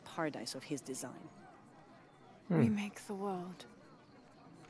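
A young woman speaks quietly and calmly.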